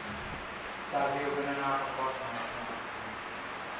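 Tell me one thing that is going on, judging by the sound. An elderly man speaks into a microphone in an echoing hall.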